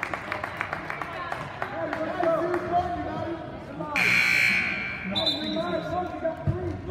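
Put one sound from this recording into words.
Spectators chatter in the stands.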